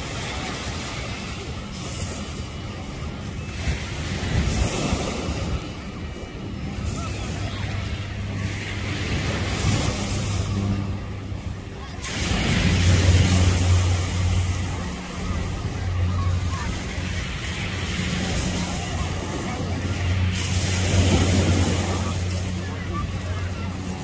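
Small waves wash onto the shore nearby.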